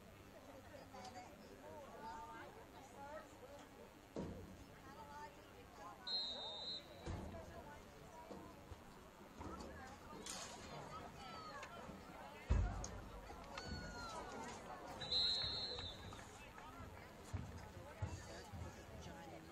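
A distant crowd cheers and shouts outdoors.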